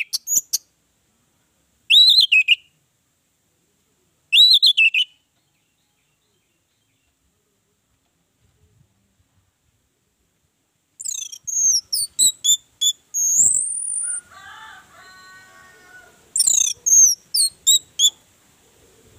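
An orange-headed thrush sings in short bursts of whistled phrases.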